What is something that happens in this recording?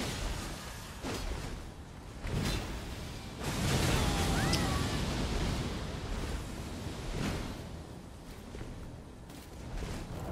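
Heavy weapon blows slam and clash in a fight.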